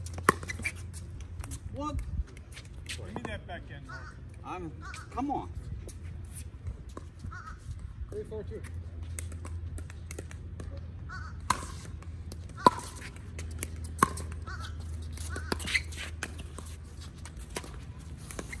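Paddles hit a plastic ball with sharp pops.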